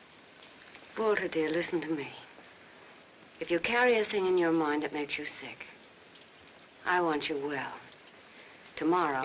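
A woman speaks gently and soothingly, close by.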